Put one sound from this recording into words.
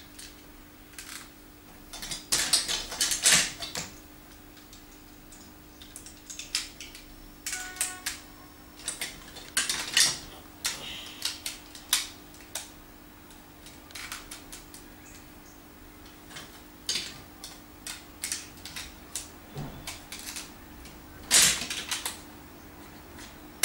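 Plastic building blocks clatter and click as a child handles them.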